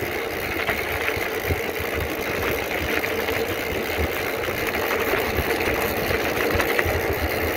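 Bicycle tyres crunch and rattle over a rough gravel road.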